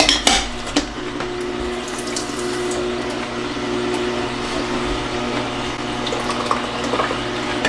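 A juicer motor whirs steadily.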